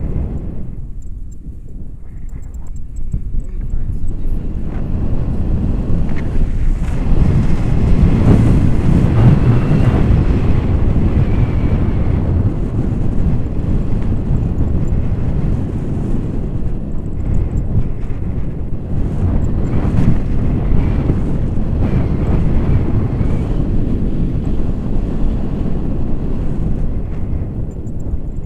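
Strong wind roars and buffets against a microphone.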